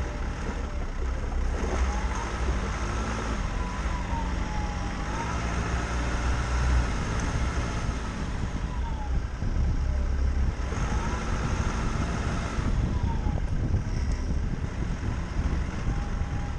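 Tyres roll and bump over a rough dirt track.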